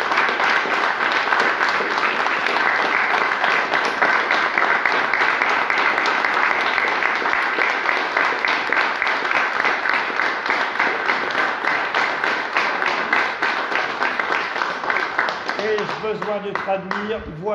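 A crowd applauds loudly in an echoing room.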